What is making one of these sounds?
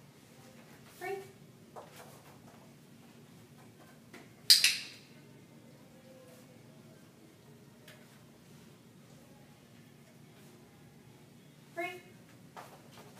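A woman speaks short, brisk words to a dog.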